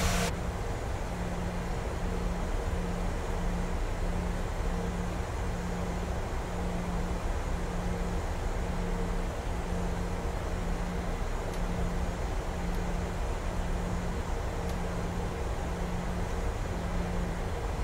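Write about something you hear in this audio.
A jet engine hums steadily at idle.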